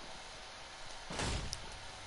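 Wooden panels clatter into place with sharp knocks.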